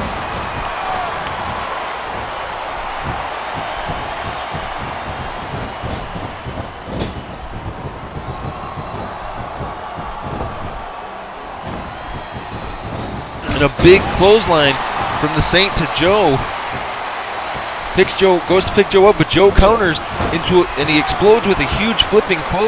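Bodies thud heavily onto a wrestling mat.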